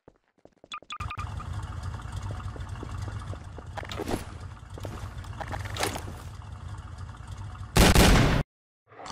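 A monstrous engine rumbles and roars steadily.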